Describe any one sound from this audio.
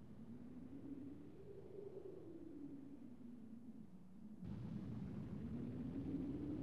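Strong wind roars and howls steadily, growing louder toward the end.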